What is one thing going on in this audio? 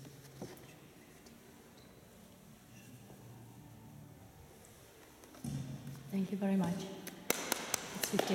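A piano plays softly and then swells in a large echoing hall.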